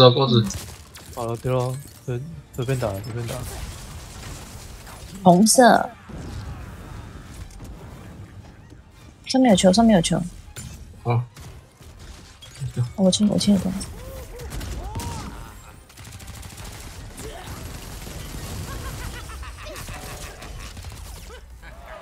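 Magic blasts and whooshes burst out during a video game battle.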